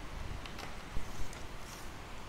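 A fishing rod knocks lightly against other rods.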